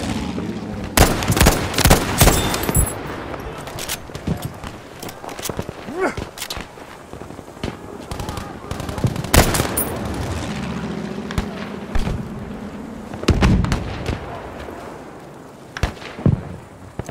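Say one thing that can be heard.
A rifle fires loud shots, one after another.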